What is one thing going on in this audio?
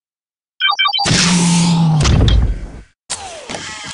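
A heavy mechanical hatch slides open with a whirring whoosh.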